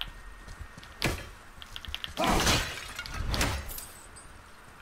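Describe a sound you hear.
Something breaks apart with a loud crash.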